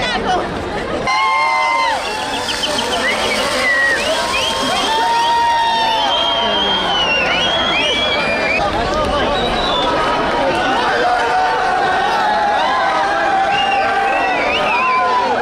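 A large crowd outdoors cheers and chants loudly.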